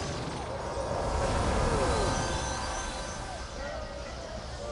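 A fiery explosion booms with a deep rumble.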